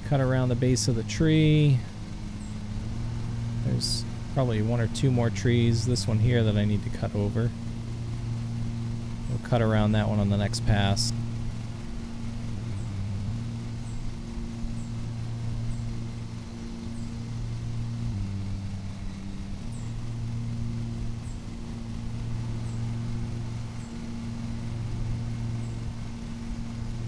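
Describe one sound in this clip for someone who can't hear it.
A riding lawn mower engine hums steadily.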